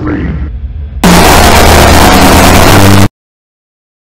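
A sudden, harsh screech blares at full loudness and cuts off abruptly.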